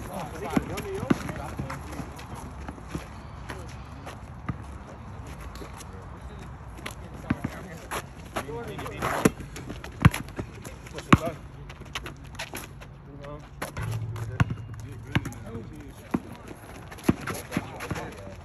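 A basketball is dribbled on asphalt outdoors.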